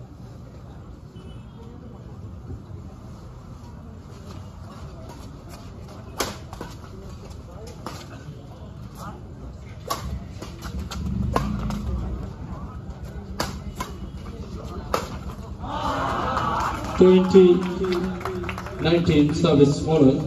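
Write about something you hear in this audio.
Shoes scuff and squeak on a hard court.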